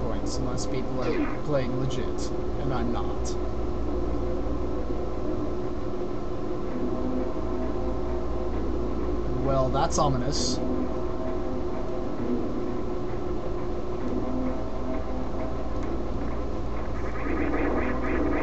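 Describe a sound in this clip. Game music plays steadily throughout.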